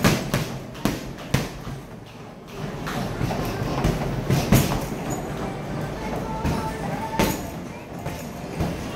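Boxing gloves thump hard against a heavy punching bag.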